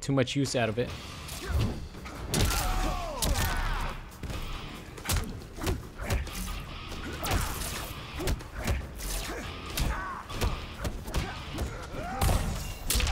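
Punches and kicks land with sharp thuds and smacks.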